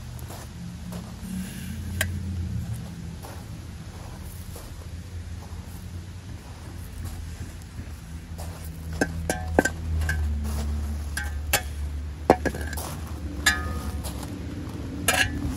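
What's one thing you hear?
A shovel scrapes and scoops gravel and sand.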